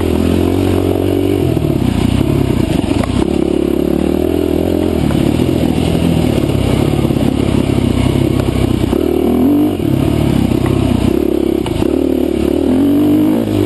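Tyres crunch over a rough dirt trail.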